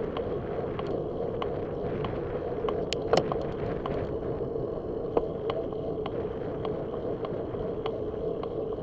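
Wind rushes steadily past a moving rider outdoors.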